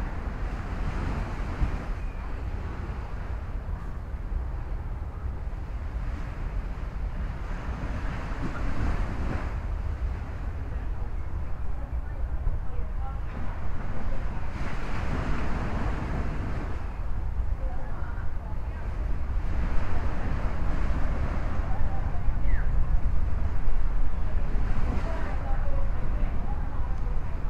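Small waves wash gently onto a sandy shore in slow swells.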